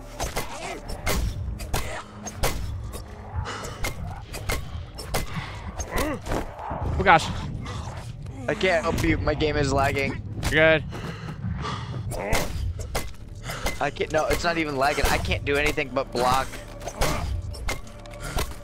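Heavy blows thud and squelch into flesh.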